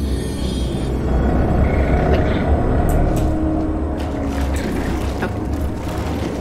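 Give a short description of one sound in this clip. Thick liquid gushes and splashes steadily.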